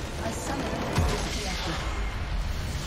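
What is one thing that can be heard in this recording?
A large crystal bursts with a deep boom.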